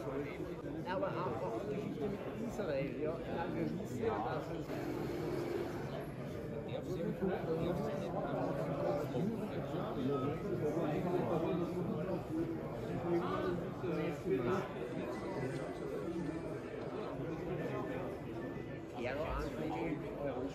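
A crowd of people chatters around in a large echoing hall.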